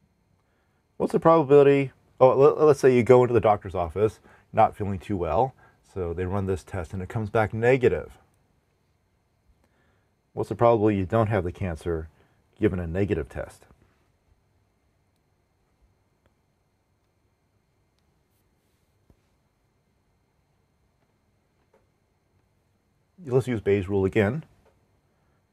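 A man speaks calmly and explains, close to a microphone, with pauses.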